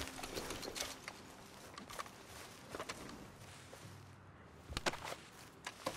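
A buckle clinks as a saddlebag is opened.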